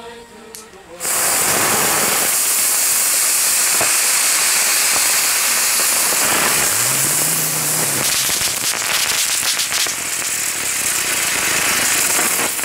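A firework fountain hisses and roars loudly outdoors.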